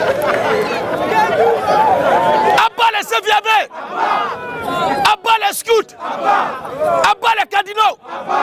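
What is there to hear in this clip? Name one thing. A man speaks loudly and with animation close by, outdoors.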